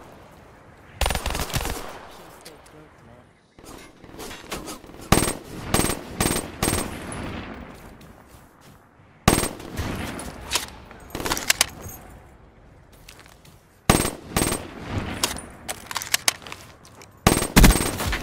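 Gunfire rattles in sharp bursts with echoing tails.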